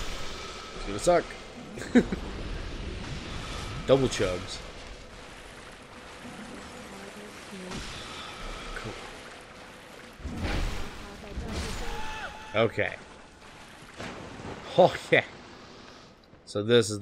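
A heavy blade swings with whooshes and strikes.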